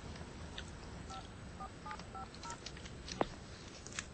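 A man presses phone buttons that beep softly.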